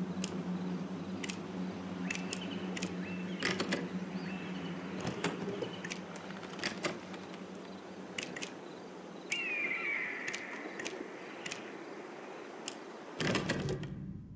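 Short, sharp interface clicks tick now and then.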